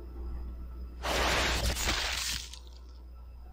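A fiery blast whooshes and roars.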